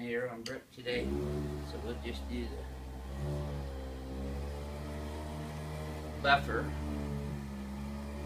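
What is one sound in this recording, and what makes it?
A handheld massager hums steadily.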